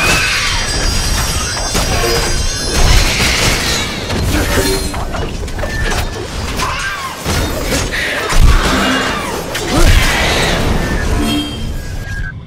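Magic blasts burst and crackle.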